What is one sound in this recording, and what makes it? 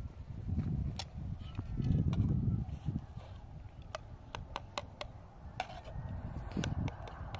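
A spoon clinks and scrapes against a metal dish.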